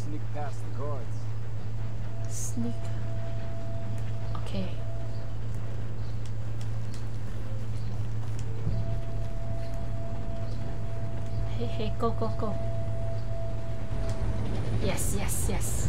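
A young woman talks now and then close to a microphone.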